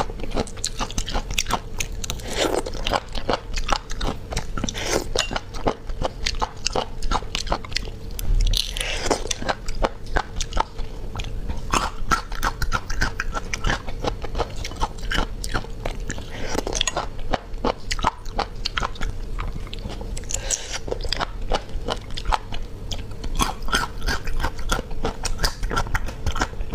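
A young woman chews with wet, crunchy mouth sounds close to a microphone.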